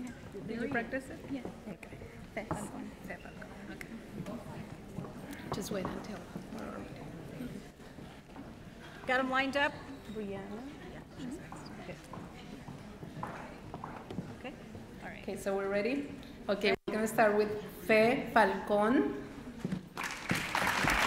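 A woman speaks calmly through a microphone and loudspeakers in a large hall.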